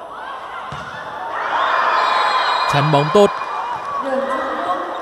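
A crowd cheers loudly after a rally.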